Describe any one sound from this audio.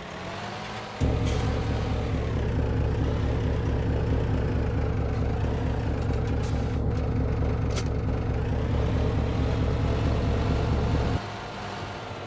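A loud engine drones steadily.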